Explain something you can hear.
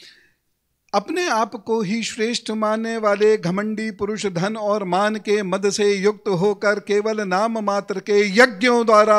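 A middle-aged man chants steadily through a microphone.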